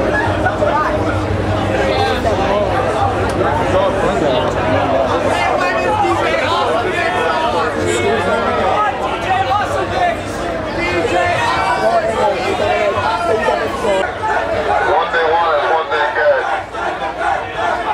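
Loud dance music with a thumping bass plays over large speakers.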